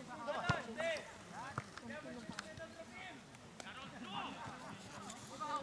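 Young players shout and call out across an open field outdoors.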